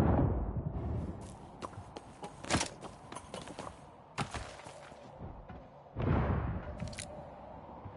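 Footsteps tread across a tiled roof.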